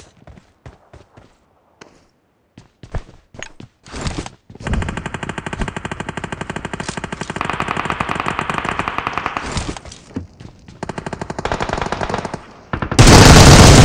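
Footsteps run quickly across the ground.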